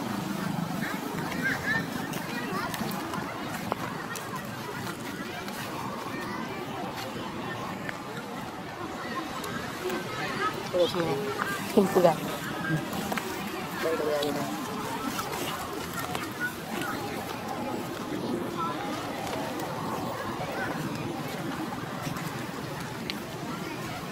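A small monkey's feet patter softly over dry leaves and earth.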